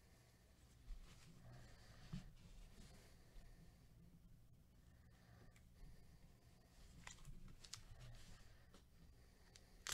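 Gloved hands crinkle and rustle a foil card pack.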